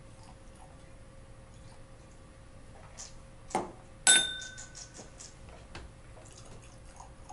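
Liquid pours from a bottle into a glass.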